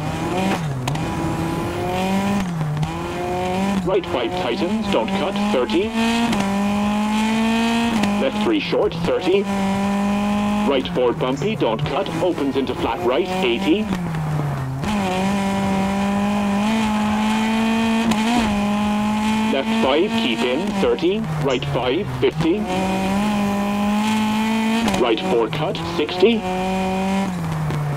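A rally car engine roars and revs up and down through the gears.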